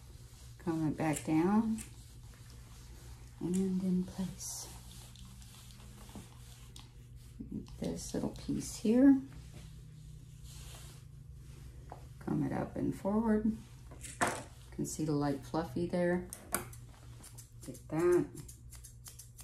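A middle-aged woman talks calmly nearby.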